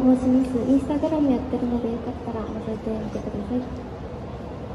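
A young woman sings loudly into a microphone through a loudspeaker.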